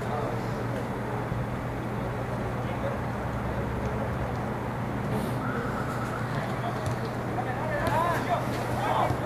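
Spectators talk nearby.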